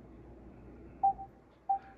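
A television gives short electronic beeps.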